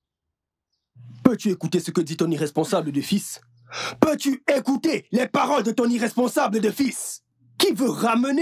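A group of men chant loudly outdoors.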